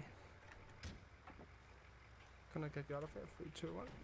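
A vehicle door opens.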